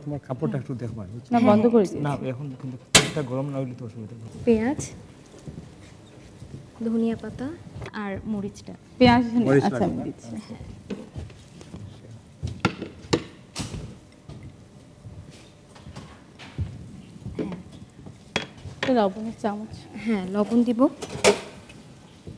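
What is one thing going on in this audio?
Young women talk through microphones, now and then.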